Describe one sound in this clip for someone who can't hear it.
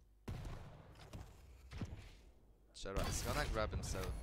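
A rocket launcher fires with a heavy thump.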